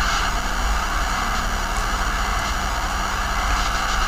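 Bursts of fire crackle and roar.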